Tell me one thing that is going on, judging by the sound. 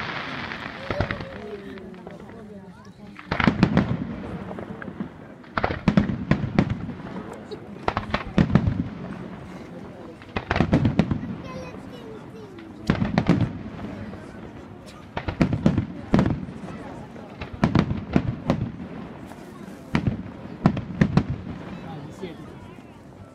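Fireworks burst with loud booms in bursts, echoing across open country.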